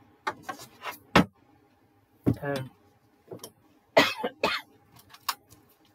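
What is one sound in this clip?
A card taps down on a hard surface.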